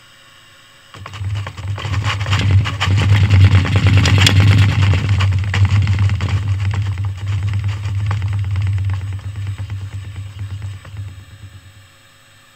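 A wooden model tower rattles and clatters as it shakes.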